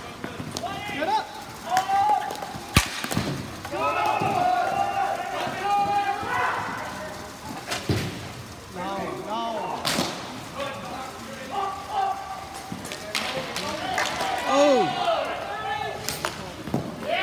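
Hockey sticks clack sharply against a ball and each other.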